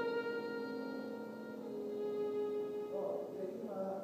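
A violin plays a sustained note in a large echoing hall.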